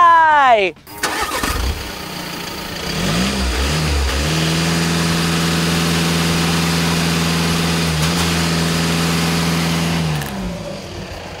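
A car's exhaust rumbles loudly as the engine idles and revs.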